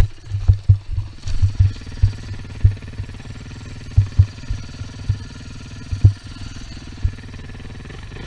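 A dirt bike engine hums steadily at low revs.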